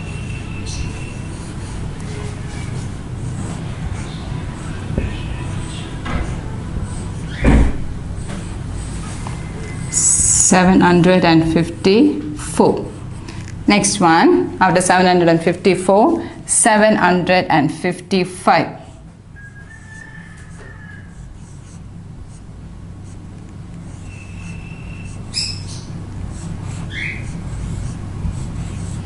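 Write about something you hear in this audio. A marker squeaks across a whiteboard.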